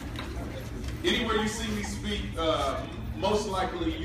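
A man speaks calmly into a microphone, amplified through loudspeakers in an echoing hall.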